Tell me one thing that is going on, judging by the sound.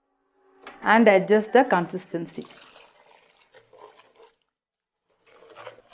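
Thick liquid pours into a pot.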